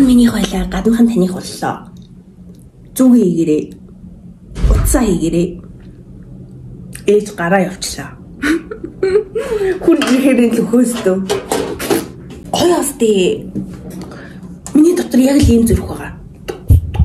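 A young woman talks with animation close to the microphone.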